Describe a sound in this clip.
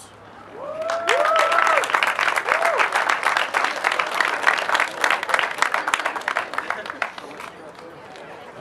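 A crowd claps and cheers loudly.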